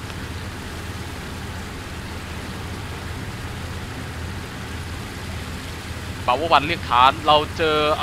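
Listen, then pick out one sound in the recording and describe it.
Water rushes and splashes along a boat's hull.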